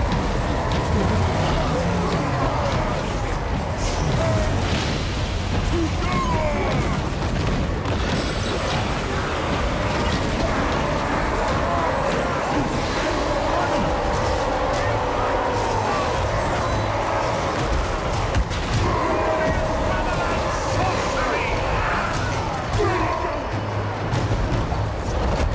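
A large battle rages with a crowd of warriors roaring.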